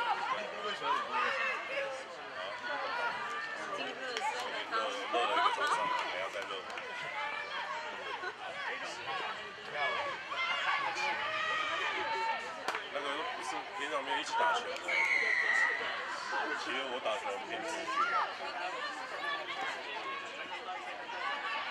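Young women call out and shout to each other outdoors.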